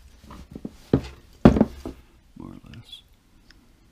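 Metal parts clink and knock together as hands handle them.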